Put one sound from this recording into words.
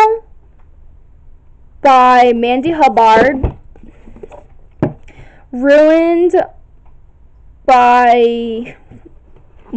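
Books knock and scrape softly against each other on a shelf.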